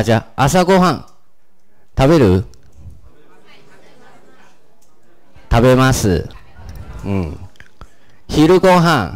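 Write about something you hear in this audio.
A woman speaks clearly into a microphone over a loudspeaker, reading words out in short bursts with pauses.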